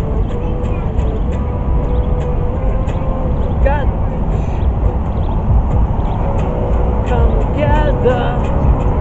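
An electric guitar plays a loud, distorted riff outdoors.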